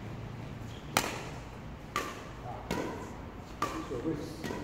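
A badminton racket smacks a shuttlecock with a sharp crack that echoes around a large hall.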